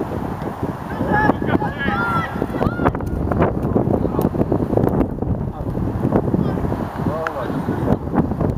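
Teenage boys shout to each other across an outdoor pitch.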